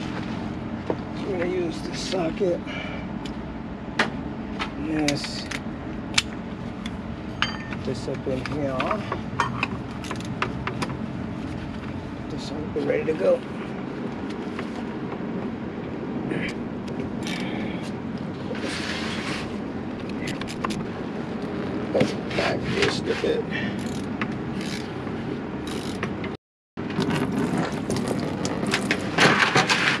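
A ratchet wrench clicks against metal parts.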